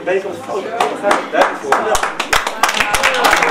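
A man speaks into a microphone, addressing a crowd.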